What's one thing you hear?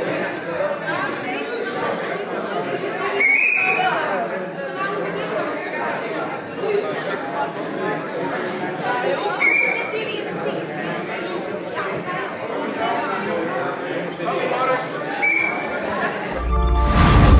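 A crowd of people chatters and murmurs in a large echoing hall.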